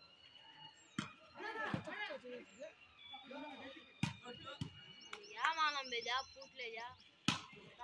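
Hands strike a volleyball outdoors.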